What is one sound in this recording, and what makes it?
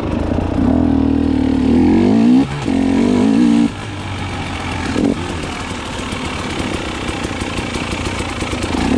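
A dirt bike engine revs loudly up and down.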